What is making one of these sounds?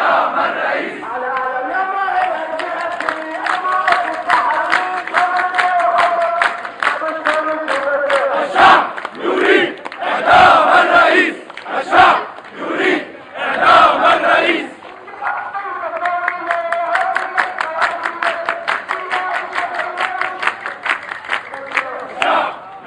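A crowd claps in rhythm.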